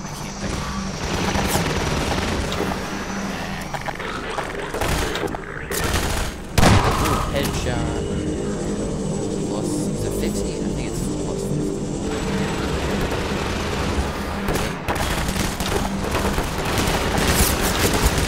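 A helicopter drones steadily overhead.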